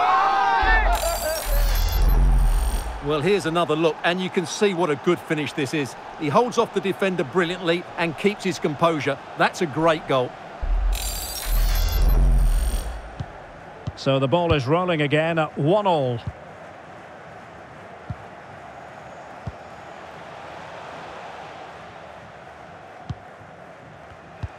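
A large stadium crowd roars and chants.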